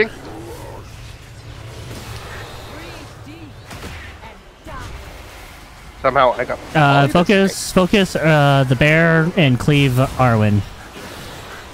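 Magic spells and weapon hits clash in a busy battle.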